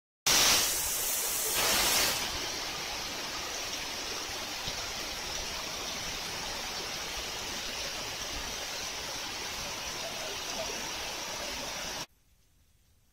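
Heavy rain pours down steadily outdoors in gusting wind.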